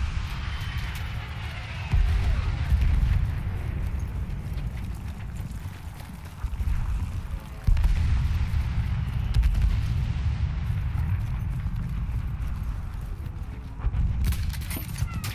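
A low, heavy rumble of explosions and gunfire booms throughout.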